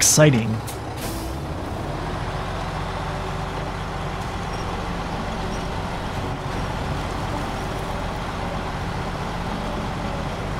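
A truck engine rumbles steadily at low revs.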